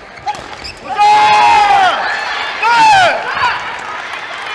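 Young men shout loudly after a rally.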